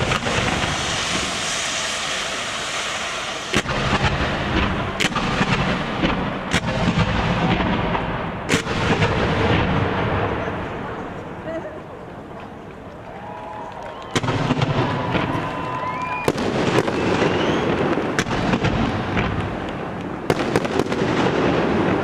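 Crackling fireworks fizz and sparkle.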